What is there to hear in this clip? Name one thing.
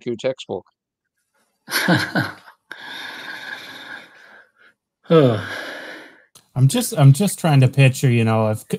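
Middle-aged men talk with animation over an online call.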